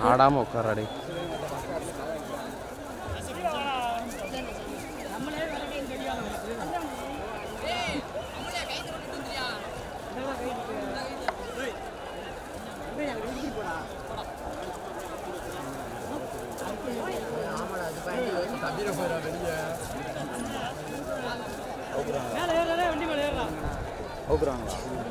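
A large outdoor crowd chatters and shouts.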